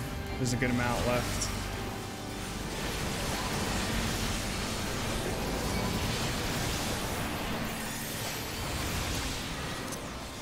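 Magic spells in a video game burst and whoosh.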